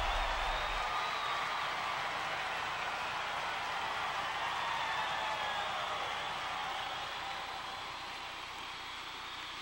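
A crowd cheers and roars in a large hall.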